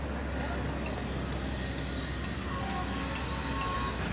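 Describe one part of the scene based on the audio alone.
A road roller's engine rumbles nearby.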